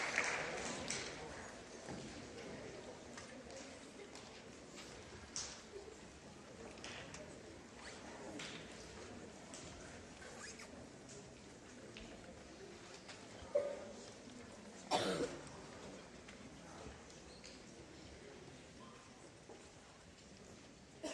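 A large school band plays in a big echoing hall, heard from the audience.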